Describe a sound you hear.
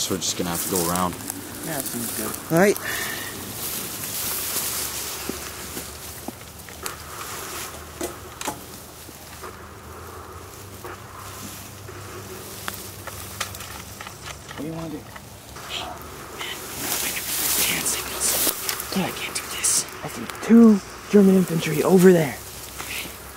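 A young man speaks urgently and close by.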